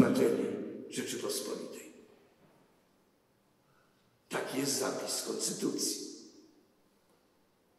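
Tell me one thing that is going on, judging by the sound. An elderly man speaks slowly and solemnly into a microphone in a large echoing hall.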